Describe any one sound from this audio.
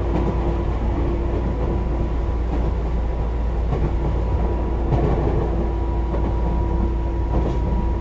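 An electric train rumbles and hums steadily along the tracks.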